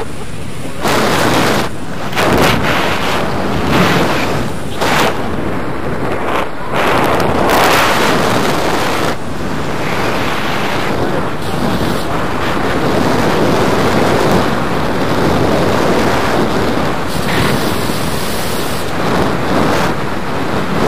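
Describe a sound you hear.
Wind rushes loudly past a microphone in flight.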